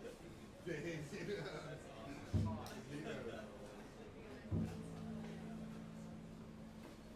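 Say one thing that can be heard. A double bass is plucked with deep notes.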